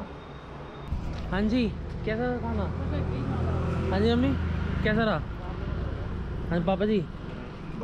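A middle-aged woman talks cheerfully close by, outdoors.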